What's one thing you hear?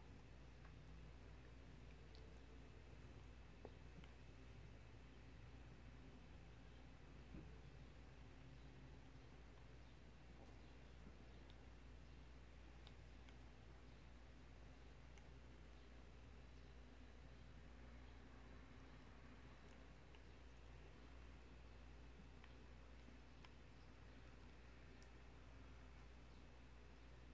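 A parrot crunches food with its beak, with quiet soft clicks.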